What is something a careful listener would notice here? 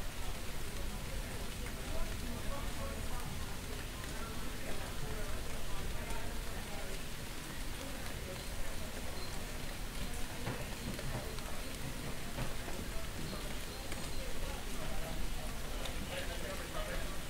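Light rain patters on a wet street outdoors.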